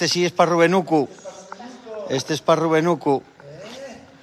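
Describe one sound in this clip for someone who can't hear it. An elderly man speaks loudly and with animation close by.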